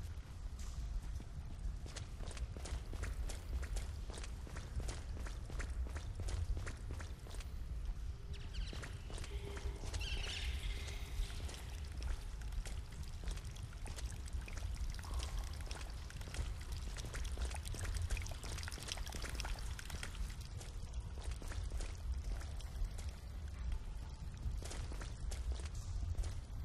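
Boots step on concrete in an echoing tunnel.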